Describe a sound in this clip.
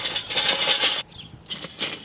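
Charcoal clatters as it is poured out of a metal chimney.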